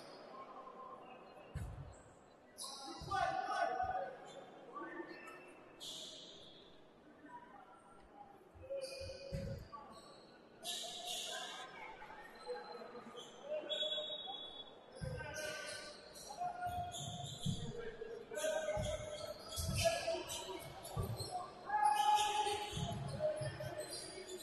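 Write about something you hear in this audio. Players shout to each other in a large echoing hall.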